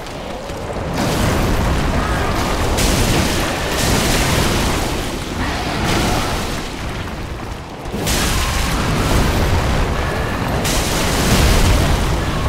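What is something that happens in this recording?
Heavy blows crash and rumble against stone.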